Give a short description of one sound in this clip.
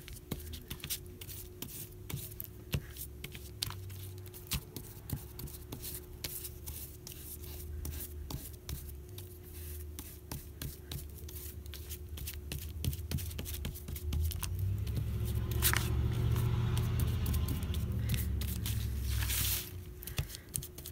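A brush dabs and taps against paper.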